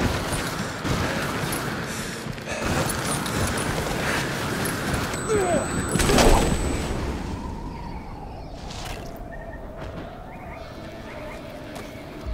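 Skis hiss and scrape quickly over snow.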